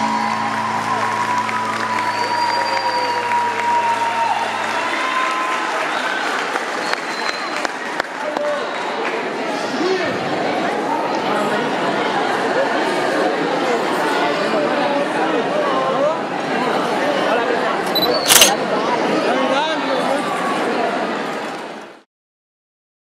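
A large crowd cheers and chatters loudly in an echoing hall.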